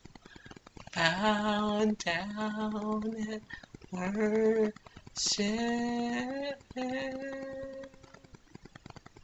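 A woman sings long, held notes close by.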